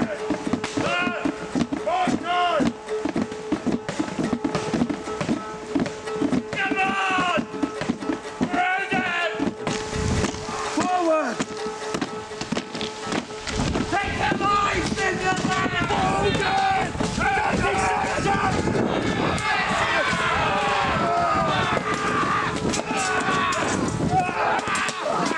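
A group of men shout and roar battle cries nearby.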